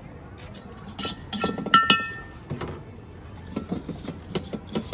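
A metal wok scrapes and clanks on a stove.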